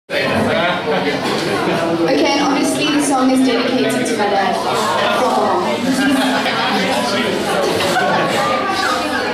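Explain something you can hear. A young woman sings into a microphone, heard through loudspeakers.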